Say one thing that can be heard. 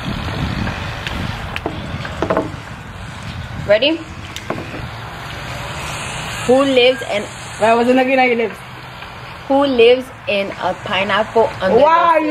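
Another young woman answers in a lively voice close by.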